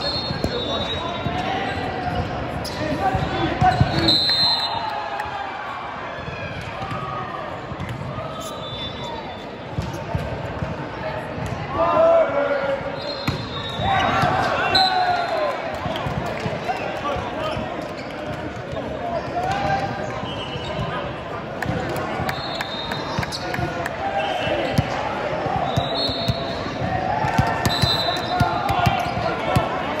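Young men call out and shout across a large echoing hall.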